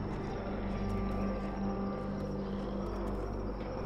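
Footsteps tread slowly on wet ground.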